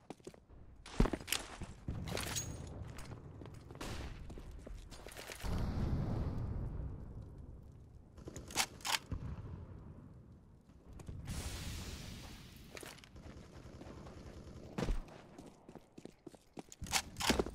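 Weapons are drawn and switched with sharp metallic clicks.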